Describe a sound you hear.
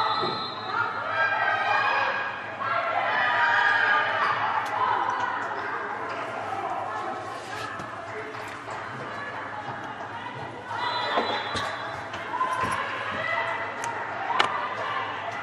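A volleyball is struck and thuds sharply in a large echoing hall.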